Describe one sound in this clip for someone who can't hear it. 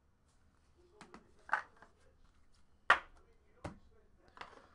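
A cardboard box is tapped and set down on a table with soft knocks.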